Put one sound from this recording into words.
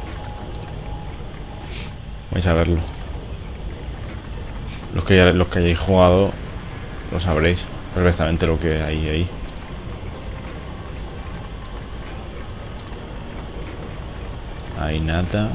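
A heavy stone mechanism grinds slowly as it turns.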